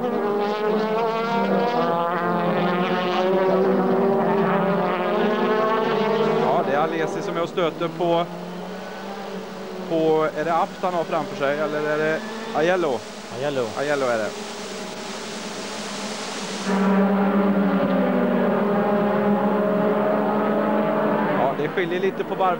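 Racing car engines roar loudly and steadily.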